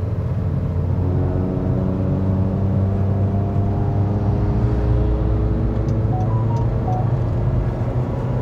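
A car engine rises in pitch as the car speeds up.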